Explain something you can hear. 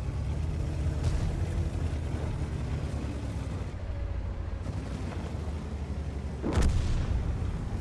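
A tank cannon fires with a sharp blast.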